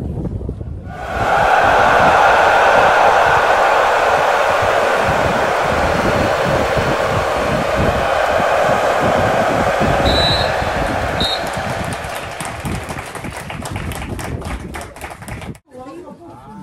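A crowd claps and cheers outdoors.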